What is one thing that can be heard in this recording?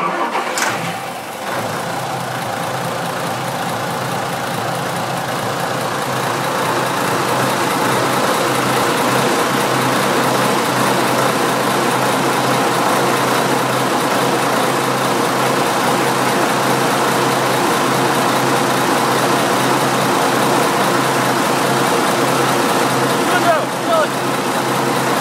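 A large diesel engine runs with a loud, steady rumbling clatter up close.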